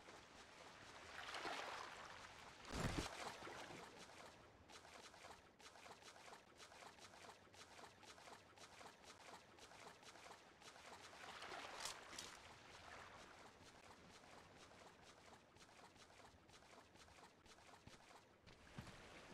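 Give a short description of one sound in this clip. Water splashes and sloshes as a swimmer strokes through it.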